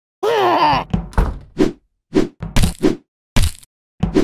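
A heavy lid swings open with a clang.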